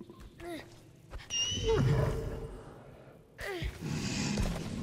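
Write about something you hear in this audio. A large creature lets out high, whining cries.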